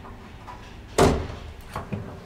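A door thuds as it swings open.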